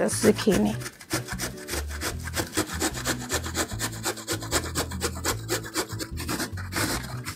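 A vegetable scrapes rhythmically against a metal grater.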